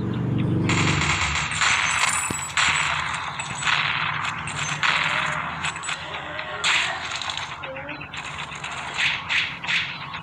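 A heavy gun fires loud booming shots.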